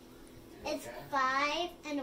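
A young girl speaks up close.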